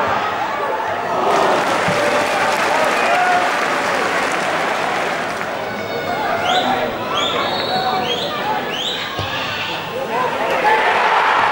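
A large crowd murmurs and chants outdoors.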